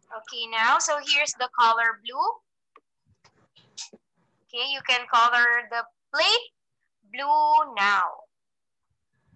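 A young woman speaks clearly through an online call, in short bursts.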